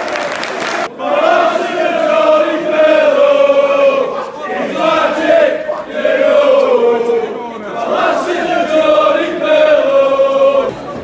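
A large stadium crowd chants and sings in unison.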